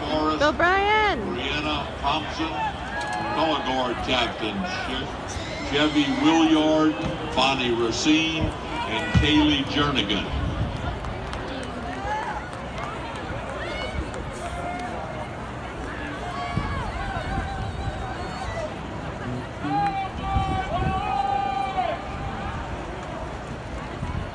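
A marching band plays brass and drums across a large open stadium.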